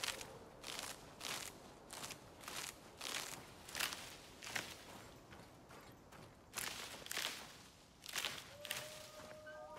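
Footsteps crunch and rustle through dry grass at a steady walking pace.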